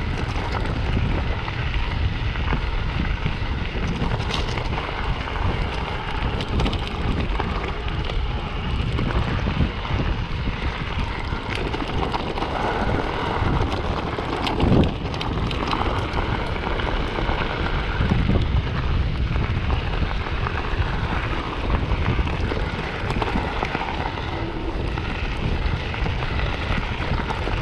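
Wind buffets loudly against the microphone.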